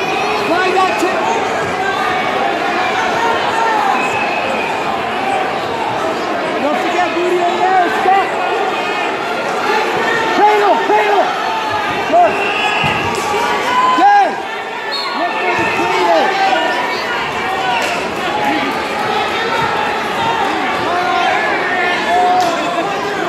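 A large crowd murmurs and chatters throughout, echoing in a large hall.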